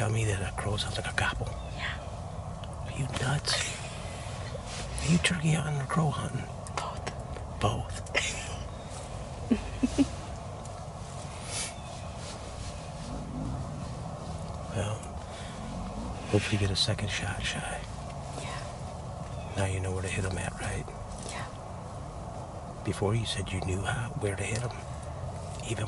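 A young woman talks quietly close by.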